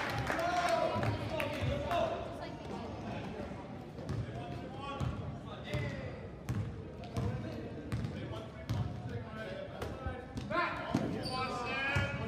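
A basketball bounces with regular thumps on a hard court.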